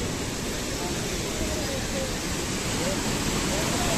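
Water rushes and splashes close by.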